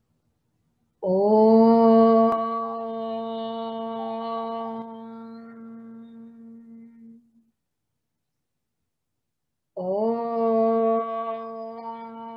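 A woman chants long, steady held tones through an online call microphone.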